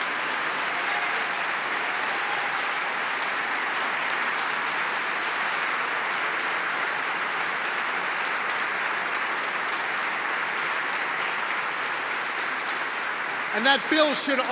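An audience applauds and cheers loudly in a large echoing hall.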